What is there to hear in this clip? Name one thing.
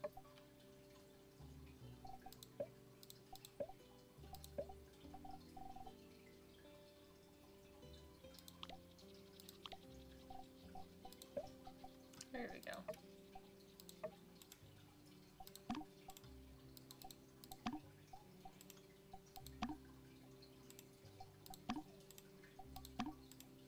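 Gentle music plays steadily.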